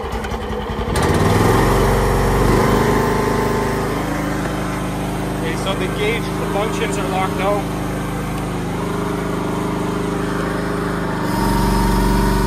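A small diesel engine starts up and idles with a steady rumble.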